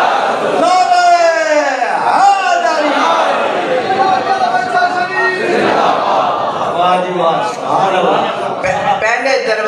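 An elderly man recites in a chanting voice through a microphone and loudspeakers, in an echoing space.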